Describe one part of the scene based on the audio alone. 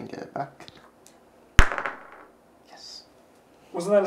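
A game piece clacks down on a board.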